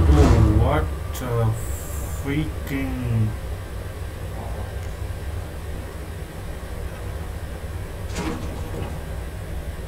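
Footsteps walk across a metal floor.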